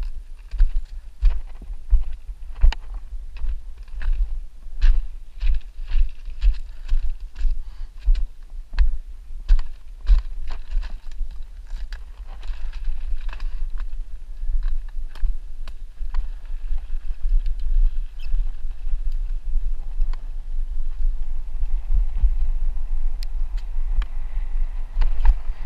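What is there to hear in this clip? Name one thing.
Wind rumbles against a microphone on a moving bicycle.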